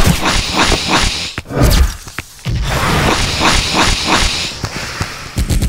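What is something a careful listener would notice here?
Quick footsteps thud on a hard surface as a character runs.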